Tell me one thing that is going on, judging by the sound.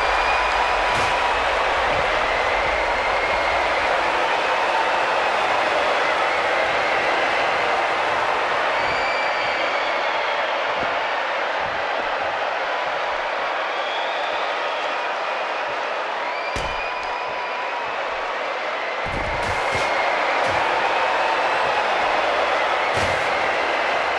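Heavy thuds of bodies slamming onto a mat ring out.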